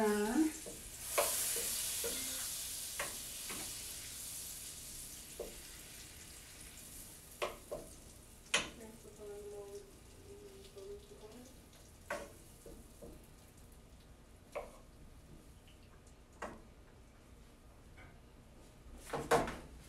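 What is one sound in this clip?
A wooden spatula scrapes and taps against a metal pan.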